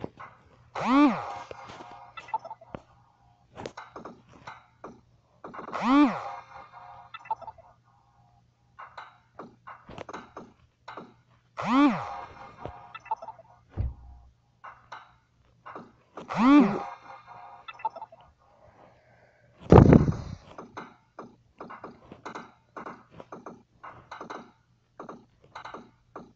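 A puck clacks against paddles and walls in quick, uneven knocks.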